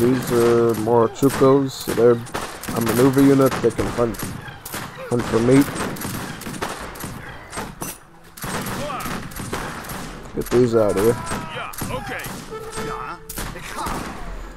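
Muskets fire in quick, scattered shots.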